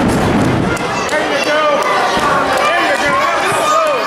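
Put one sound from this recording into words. A wrestler's body slams hard onto the ring mat.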